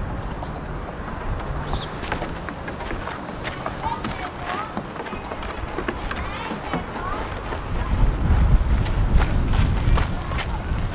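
A small goat's hooves clatter on wooden boards.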